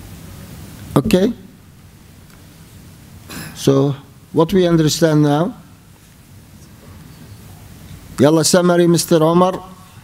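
A middle-aged man speaks slowly and calmly into a microphone, with pauses between phrases.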